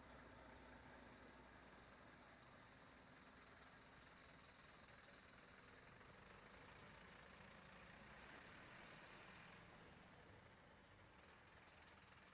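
Car engines idle in a traffic jam outdoors.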